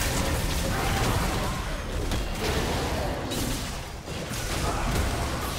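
Magical blasts and impacts burst repeatedly.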